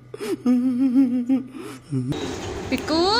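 A man wails and sobs loudly.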